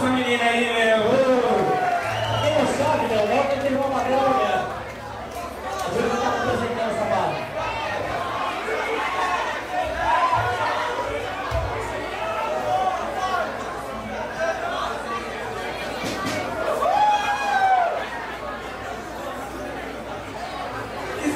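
Electric guitars play loud distorted riffs.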